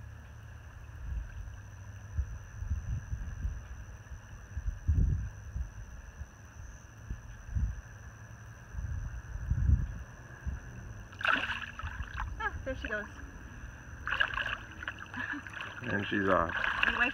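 Water sloshes and splashes around a woman wading in shallow water.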